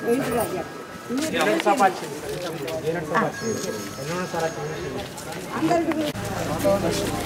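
A man speaks calmly up close to a small group.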